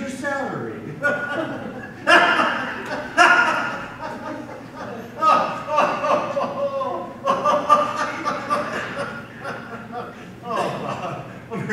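An elderly man speaks with animation in an echoing hall.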